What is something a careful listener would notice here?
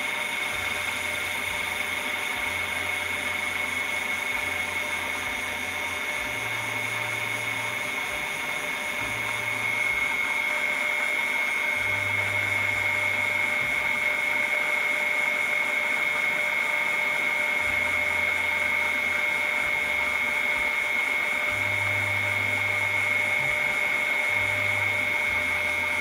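Water sprays and bubbles into a tank.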